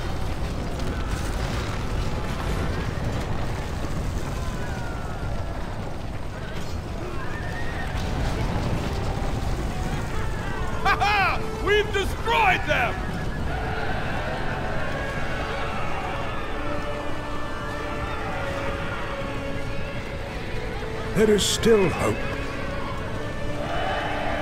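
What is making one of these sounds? Battle noise of a crowd of fighters clashes and roars throughout.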